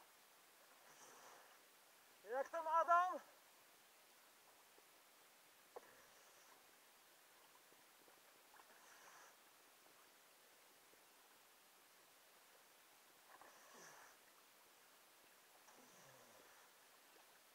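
Water splashes softly in the dark.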